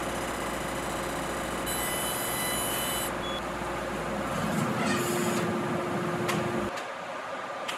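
A laser cutter hums steadily and hisses as it cuts.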